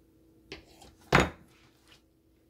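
A knife clatters down onto a cutting board.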